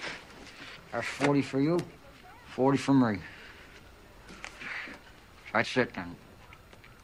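A man speaks in a calm, low voice.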